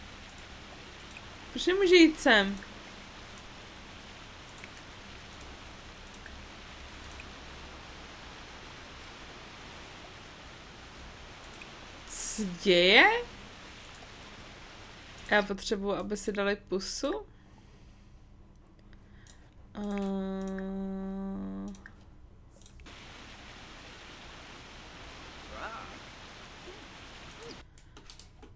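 A waterfall pours and splashes steadily into a pool.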